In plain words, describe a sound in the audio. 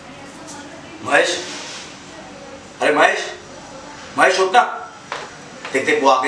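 A young man speaks close by in short, animated bursts.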